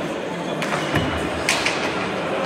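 A ball smacks hard against a wall and echoes.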